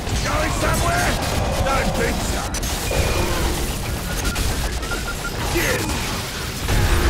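A heavy gun fires rapid bursts of energy.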